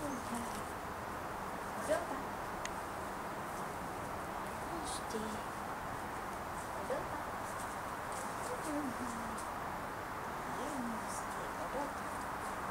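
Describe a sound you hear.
A woman talks softly and encouragingly nearby.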